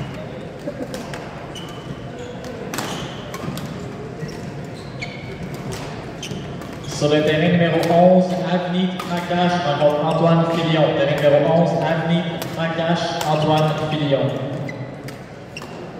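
Rackets strike a shuttlecock back and forth in a large echoing hall.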